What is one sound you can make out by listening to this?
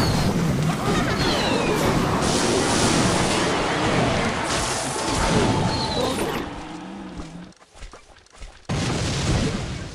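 Cartoonish battle effects clash and burst.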